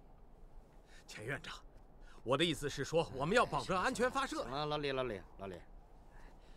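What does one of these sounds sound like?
Another man answers firmly, close by.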